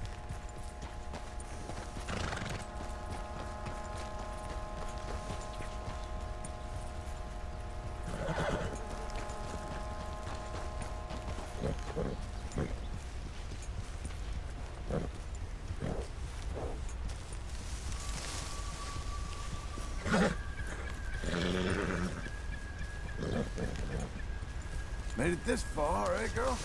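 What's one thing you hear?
A horse's hooves thud softly through undergrowth.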